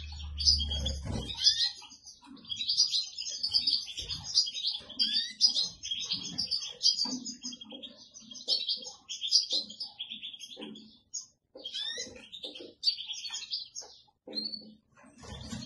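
Goldfinch nestlings beg with rapid, high chirps.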